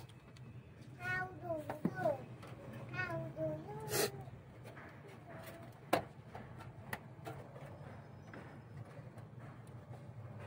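A plug clicks and knocks as it is pushed into a computer.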